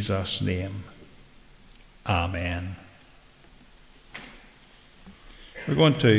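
An elderly man preaches in measured phrases through a microphone in a reverberant hall.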